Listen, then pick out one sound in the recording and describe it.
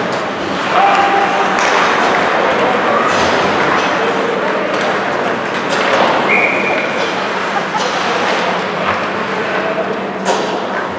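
A crowd murmurs and calls out in a large echoing arena.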